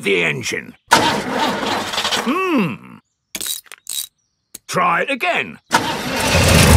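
An elderly man speaks cheerfully in a cartoon voice.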